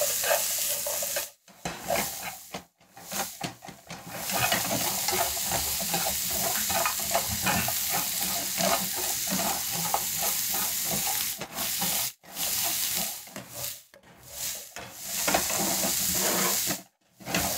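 Chopsticks scrape and tap against a pan.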